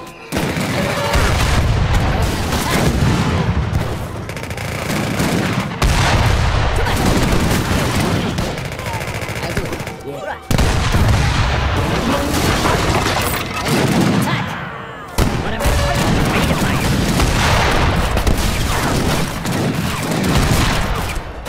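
Musket volleys crack in a battle.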